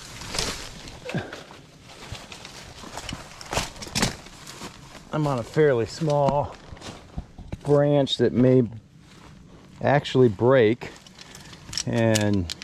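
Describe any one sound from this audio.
A rope rubs and rustles as hands pull it around a tree trunk.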